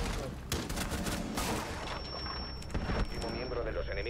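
Gunshots crack in a video game.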